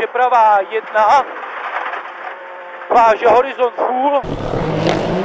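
A rally car engine roars and revs hard from inside the cabin.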